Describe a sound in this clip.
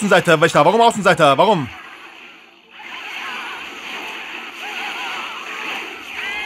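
Game battle sounds of attacks and explosions play.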